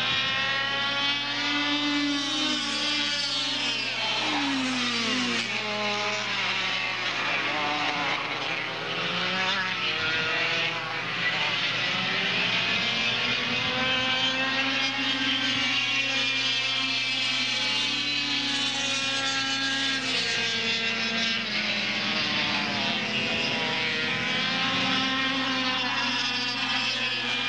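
Kart engines buzz and whine loudly, rising and falling in pitch as they race past.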